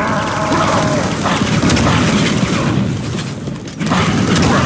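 A rifle fires rapid shots.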